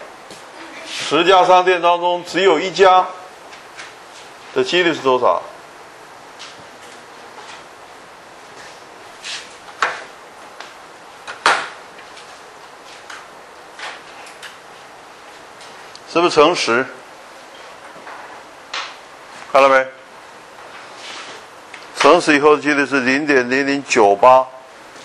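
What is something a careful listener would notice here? An elderly man speaks in bursts through a microphone, in a calm lecturing voice.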